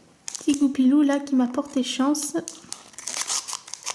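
Scissors snip through a foil wrapper.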